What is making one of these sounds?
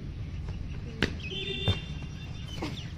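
A girl lands with a thud in sand.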